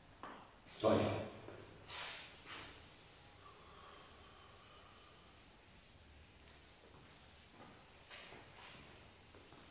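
An elderly man speaks in short phrases.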